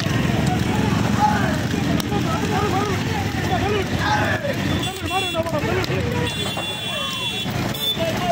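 A motorbike engine rumbles steadily up close.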